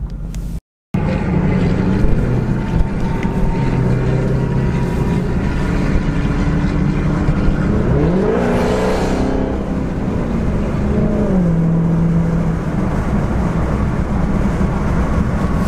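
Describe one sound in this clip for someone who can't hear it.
A car engine roars loudly and shifts through gears while driving fast.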